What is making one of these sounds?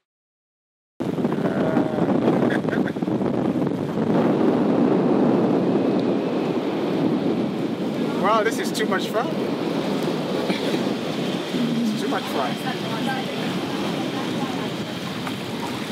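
Wind blows loudly and buffets across the deck.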